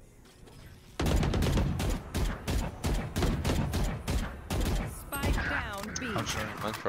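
Rapid bursts of gunfire ring out with sharp echoing cracks.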